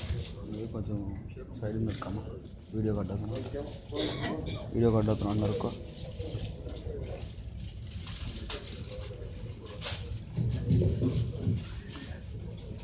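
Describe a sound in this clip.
Men talk in a low murmur nearby.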